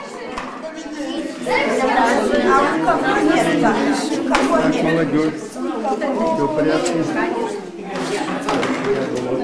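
A crowd of adults and children chatters in a busy room.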